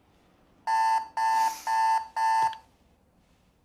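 An alarm clock beeps loudly in four quick bursts.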